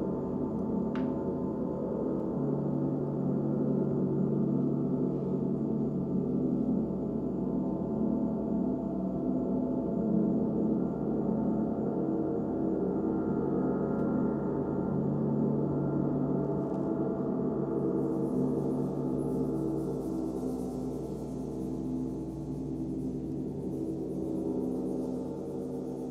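Large gongs ring with a deep, steady, shimmering drone.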